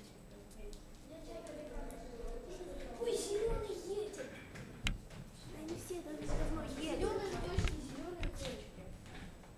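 Young people talk nearby in a room.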